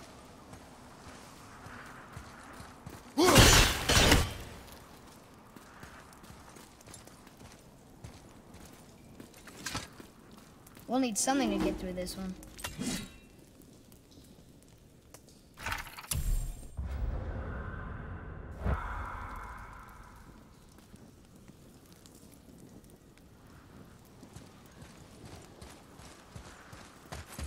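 Heavy footsteps crunch slowly on stone and gravel.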